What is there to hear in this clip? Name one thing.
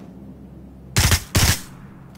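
Rifle shots crack loudly in quick succession.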